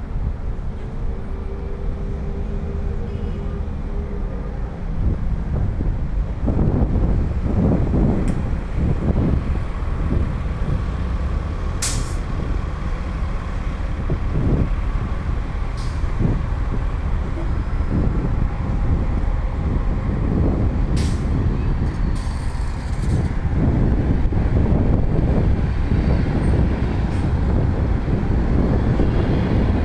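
Cars pass by on a nearby road.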